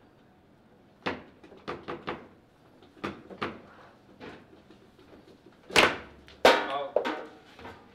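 A ball clacks sharply against plastic players and table walls.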